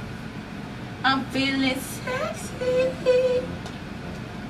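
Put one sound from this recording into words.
A second young woman laughs close by.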